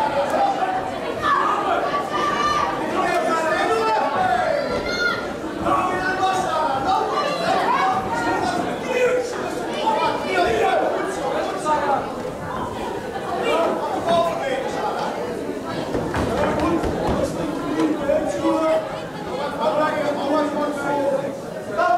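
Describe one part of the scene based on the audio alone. Boxing gloves thud on a fighter's body.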